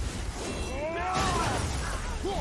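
A blast of ice bursts with a crackling whoosh.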